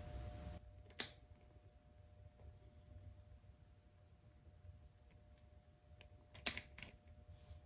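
A dropper taps and clicks against a small bottle.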